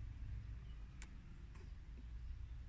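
Small plastic parts click sharply in a man's fingers.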